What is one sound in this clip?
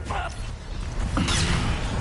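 An energy beam hums in a video game.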